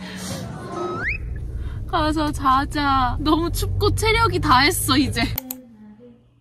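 A young woman talks cheerfully up close in a car.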